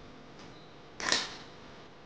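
Scissors snip through leaves.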